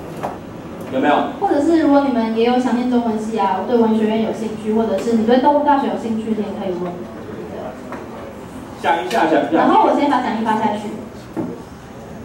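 A young woman speaks calmly into a microphone over loudspeakers.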